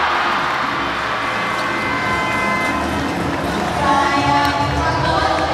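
A large crowd cheers and shouts loudly in an echoing indoor arena.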